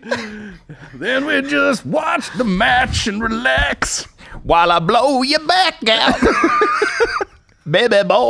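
A second man talks back and forth through a close microphone.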